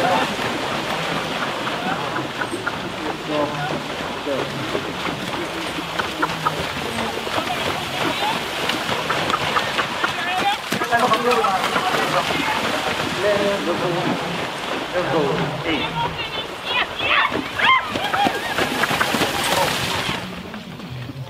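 A horse-drawn carriage splashes through shallow water.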